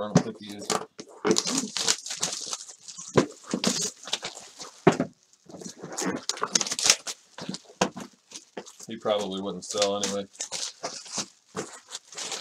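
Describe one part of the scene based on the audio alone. A cardboard box rubs and thumps as it is handled.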